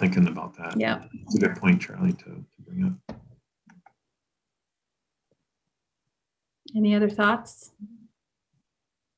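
A woman speaks in a friendly tone over an online call.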